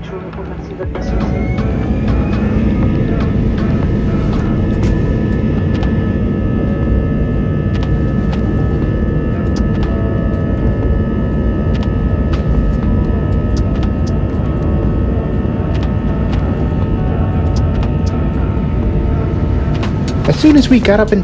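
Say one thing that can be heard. Jet engines roar loudly and steadily as an airliner speeds up for takeoff.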